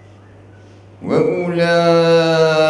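A man begins chanting in a loud, drawn-out melodic voice through a microphone.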